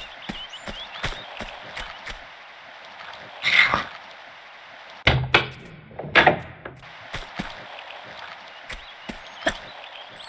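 Footsteps thud quickly across a wooden floor.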